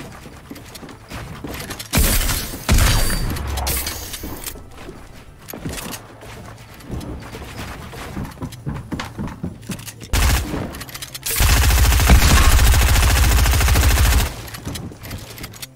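Wooden walls and ramps clatter into place in quick succession.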